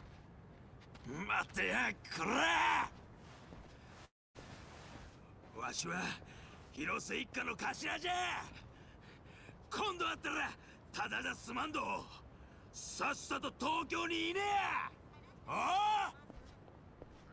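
A young man shouts angrily and threateningly, close by.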